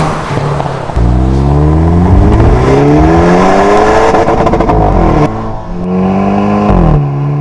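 A car engine revs up and down loudly, shifting gears.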